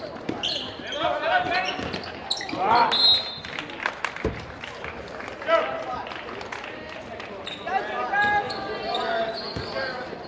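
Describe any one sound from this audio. A basketball bounces on the court.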